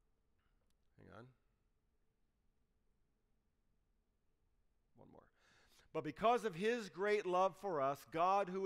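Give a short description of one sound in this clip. A middle-aged man speaks calmly through a microphone, with pauses.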